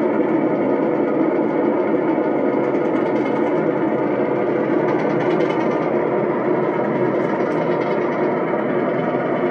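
Dense electronic noise and drones play steadily from a loudspeaker.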